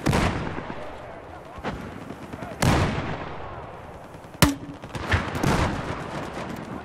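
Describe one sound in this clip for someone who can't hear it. Loud gunshots ring out in sharp bursts.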